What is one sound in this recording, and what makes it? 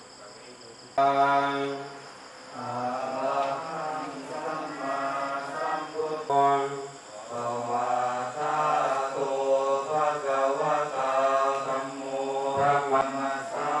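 Men chant together in a steady, deep drone through a microphone.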